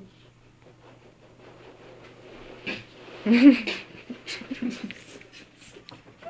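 A young man laughs softly close by.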